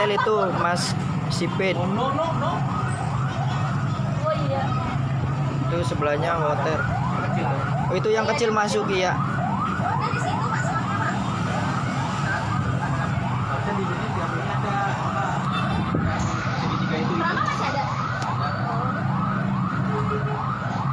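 A siren yelps rapidly and steadily nearby.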